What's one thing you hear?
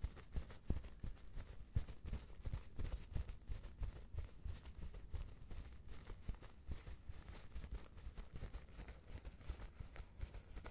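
Paper tissue crinkles and rustles close to a microphone.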